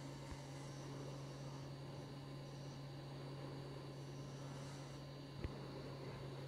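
A chisel scrapes against spinning wood.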